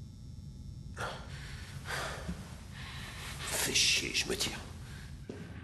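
An older man speaks in a gruff, low voice.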